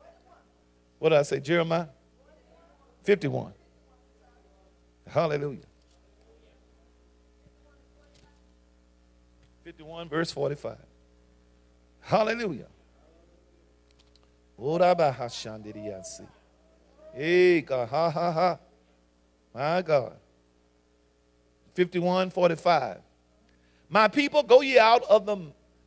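A man speaks slowly and forcefully into a microphone, in short bursts with pauses.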